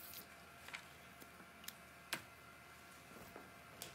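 A pen is set down on a table with a light tap.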